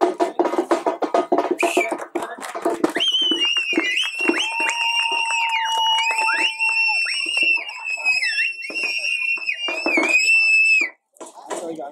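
A crowd of men cheers and shouts.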